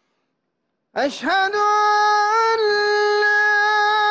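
A man's voice chants a long, steady call through loudspeakers outdoors.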